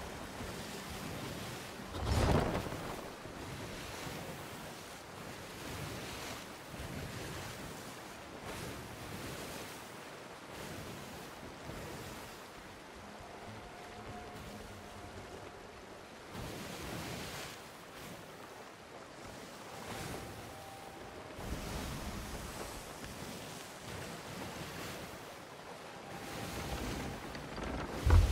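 Rough sea waves crash and surge against a wooden ship.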